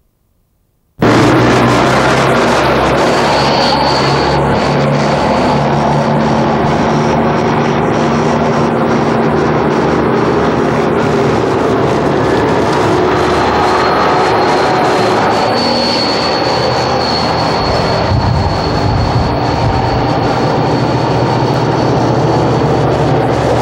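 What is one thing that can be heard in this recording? A heavy armoured vehicle's engine roars loudly and steadily up close.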